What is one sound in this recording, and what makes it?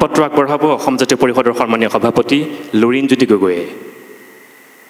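A man announces loudly through a microphone and loudspeakers.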